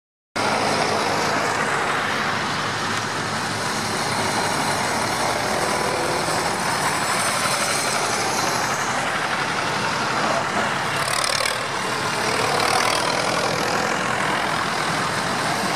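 Tractor engines chug and rumble as the tractors drive past one after another.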